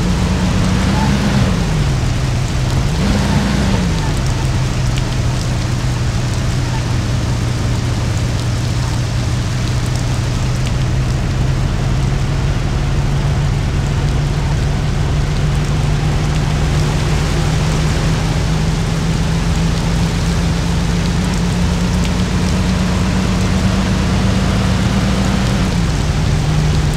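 An old car engine revs up and drops as gears change.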